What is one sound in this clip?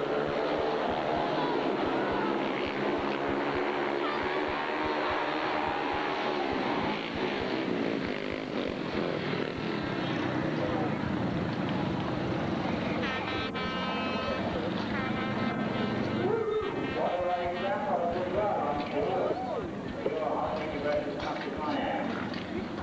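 Speedway motorcycle engines roar and rev loudly as the bikes race around the track.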